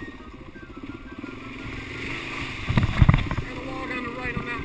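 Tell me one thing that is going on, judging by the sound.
Tyres splash through muddy puddles.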